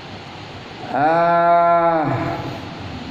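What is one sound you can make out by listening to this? A middle-aged man chants a long, drawn-out note close by.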